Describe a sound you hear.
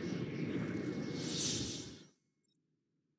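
A flock of bats flutters past in a rushing swirl of wings.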